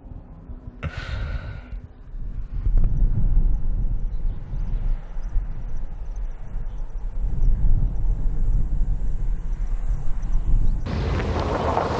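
A car drives along a road in the distance.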